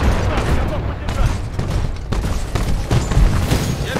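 Heavy gunfire blasts in rapid bursts.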